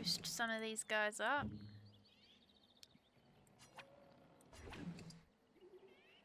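A young woman speaks into a microphone with animation.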